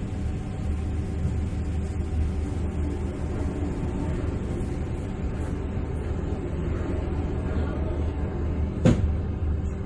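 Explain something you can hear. Ship machinery hums steadily and low.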